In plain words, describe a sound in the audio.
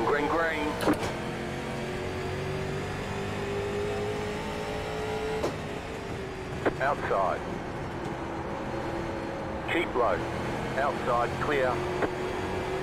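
A man talks in short bursts, close to a microphone.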